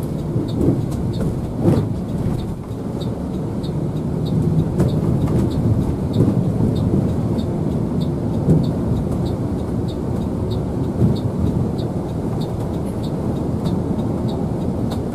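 A bus engine rumbles steadily while driving along a road.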